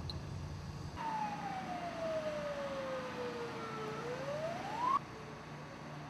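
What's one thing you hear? A siren wails, falling and then rising.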